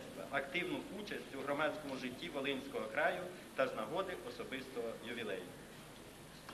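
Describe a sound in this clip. A middle-aged man reads aloud into a microphone.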